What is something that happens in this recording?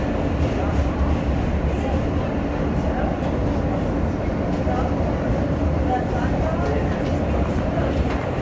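Steel wheels squeal and screech against the rails.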